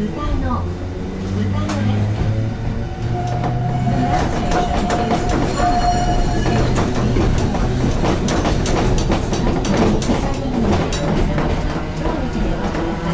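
A train's motor hums and whines as it pulls away.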